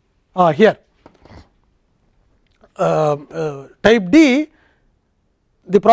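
An elderly man lectures calmly, close to a microphone, in short bursts.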